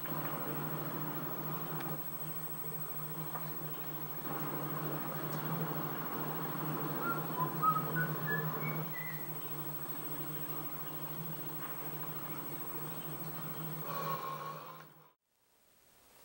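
A television plays with a steady low hum.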